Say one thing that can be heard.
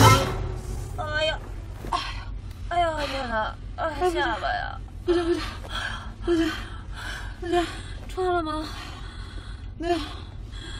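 A young woman speaks slowly and drowsily, close by.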